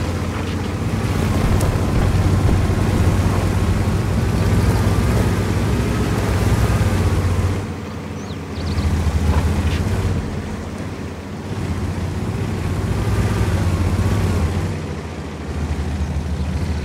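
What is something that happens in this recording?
A heavy tank engine rumbles as the tank drives over rough ground.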